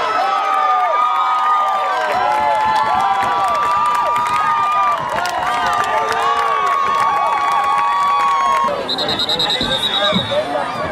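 A crowd cheers and shouts with excitement outdoors.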